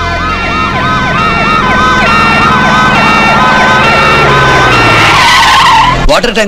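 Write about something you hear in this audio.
Several ambulance sirens wail rapidly up and down, close by.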